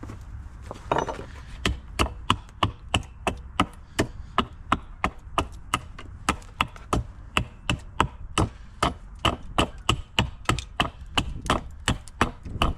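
A file rasps against a saw chain in quick, even strokes.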